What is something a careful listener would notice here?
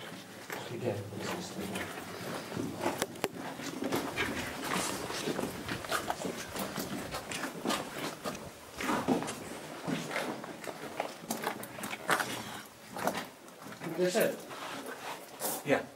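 Footsteps shuffle on a stone floor in a narrow echoing tunnel.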